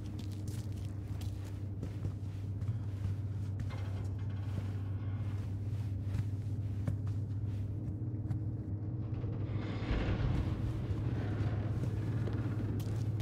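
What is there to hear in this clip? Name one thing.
Footsteps walk on a hard floor indoors.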